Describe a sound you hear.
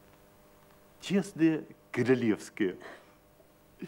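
A young woman speaks brightly in reply.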